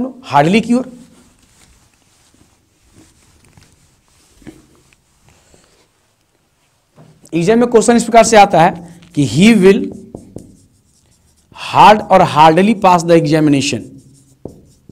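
A man speaks clearly and calmly close by, as if teaching, in short bursts.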